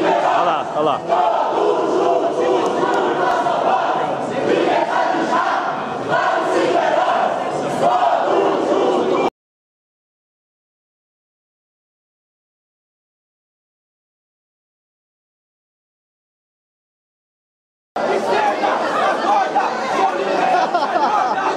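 A crowd of men and women shout and chant loudly in a large echoing hall.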